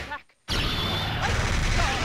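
Electricity crackles in a video game.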